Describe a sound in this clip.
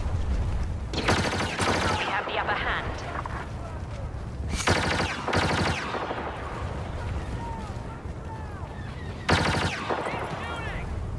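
Laser blasters fire in rapid zapping bursts.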